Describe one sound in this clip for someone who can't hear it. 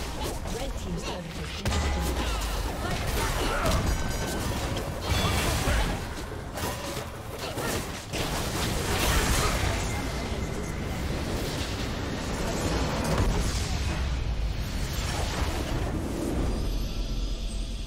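Spell effects crackle and clash in a busy game battle.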